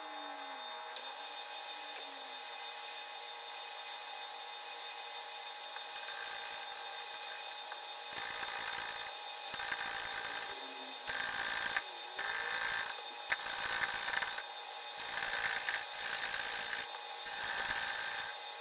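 A metal lathe spins with a steady whirring hum.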